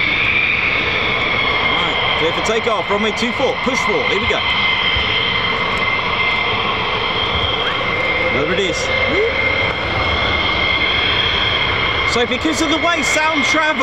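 Jet engines whine steadily outdoors.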